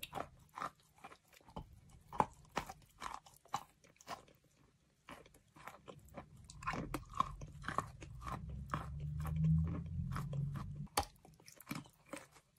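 A young woman bites into soft, saucy food close to a microphone.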